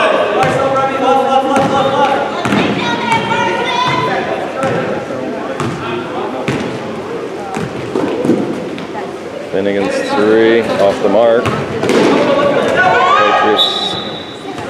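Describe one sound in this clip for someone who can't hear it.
A crowd of spectators murmurs and calls out nearby.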